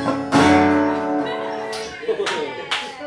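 A man strums a chord on an acoustic guitar.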